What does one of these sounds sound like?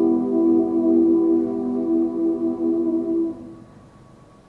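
A choir sings a sustained closing chord in a large hall.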